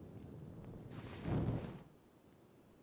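A torch swishes through the air.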